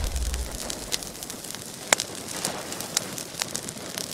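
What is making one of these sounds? Flames crackle and pop.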